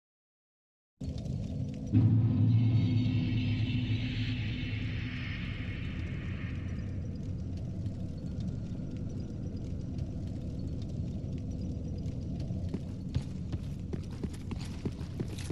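A fire crackles softly nearby.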